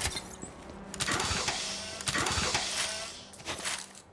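Metal crates pop open with a loud hissing burst.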